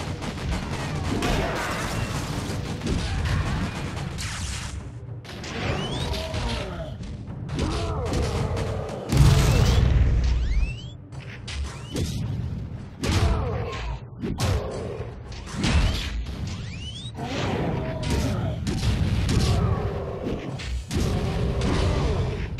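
Heavy blows land with loud thuds and crashes.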